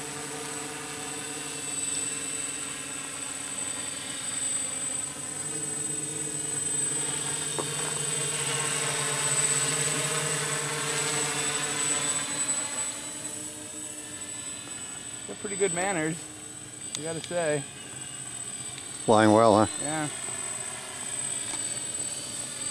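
A drone's propellers whine and buzz steadily overhead, shifting in pitch as it moves.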